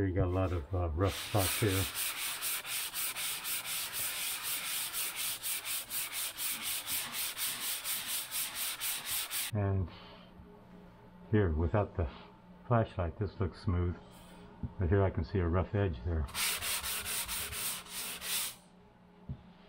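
A sanding block scrapes rapidly back and forth over a plaster surface.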